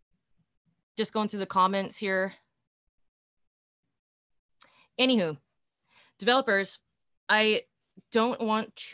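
A young woman speaks calmly through an online call, with pauses.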